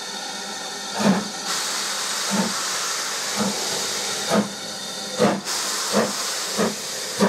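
A steam locomotive chuffs in slow, heavy beats as it pulls away.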